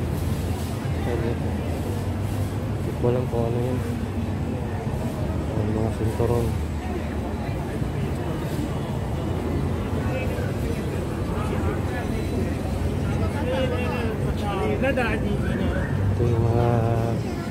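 Men and women chatter nearby in a busy outdoor crowd.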